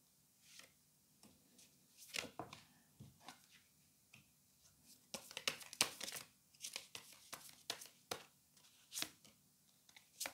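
Cards are laid down on a soft surface with light taps and rustles.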